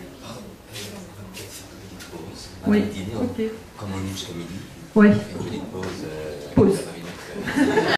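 A middle-aged woman speaks expressively into a microphone.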